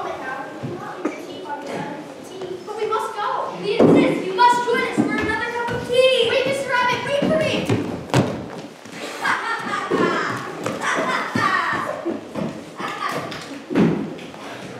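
Young actors speak loudly in a hall with an echo.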